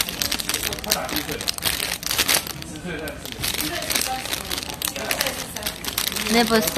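A plastic snack wrapper crinkles and rustles close by.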